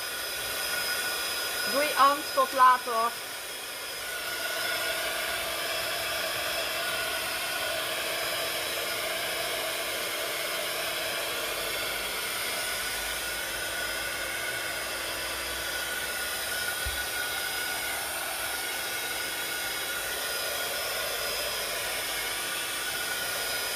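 A heat gun blows with a steady, airy whir.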